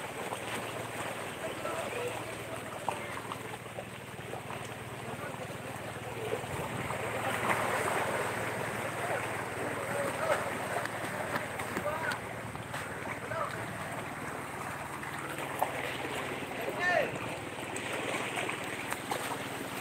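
Small waves wash over rocks at the shore.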